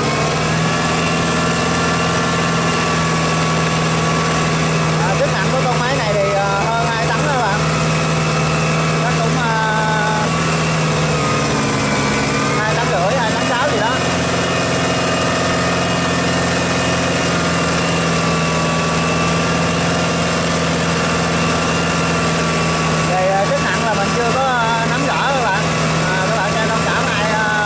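Tractor tyres churn and splash through wet mud.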